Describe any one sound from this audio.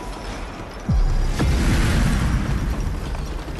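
A deep rumbling boom swells and then fades.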